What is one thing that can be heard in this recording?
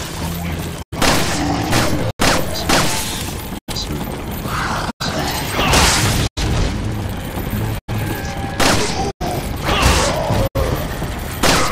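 Pistol shots crack loudly, one after another.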